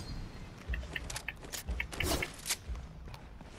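Items clatter onto the ground.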